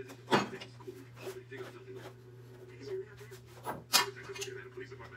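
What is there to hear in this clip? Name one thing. Fingers rustle and scratch through hair close by.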